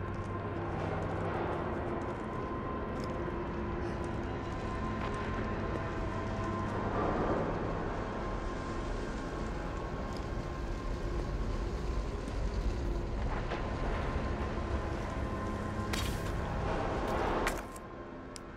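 Footsteps scuff slowly across a hard wet floor.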